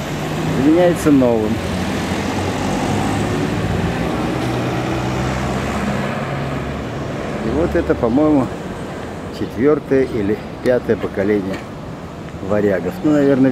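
Traffic rumbles steadily along a nearby road.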